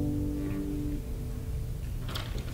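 Several acoustic guitars play a chord together that rings out and fades in an echoing hall.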